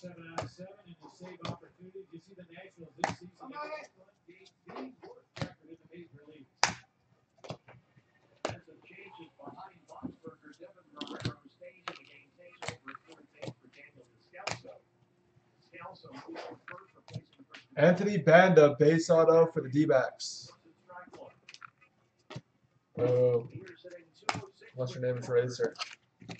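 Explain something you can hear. Trading cards slide and snap as hands flip through a stack.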